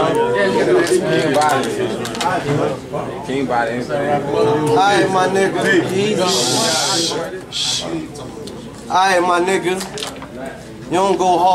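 A young man raps loudly and with animation close by.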